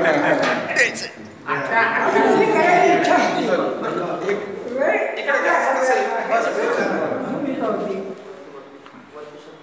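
Elderly men talk and laugh together nearby in a small echoing room.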